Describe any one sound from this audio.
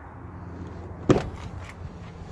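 A pickup truck's door unlatches and swings open.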